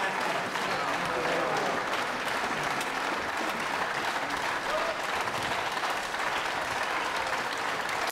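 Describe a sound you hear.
A large audience applauds steadily in a big hall.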